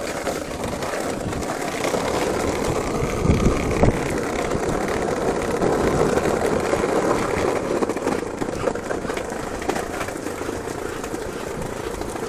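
A dog's paws patter on paving stones.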